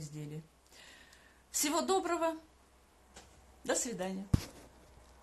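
A middle-aged woman speaks close by in short phrases.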